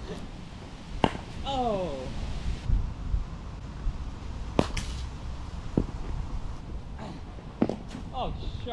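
A cricket ball cracks off a bat.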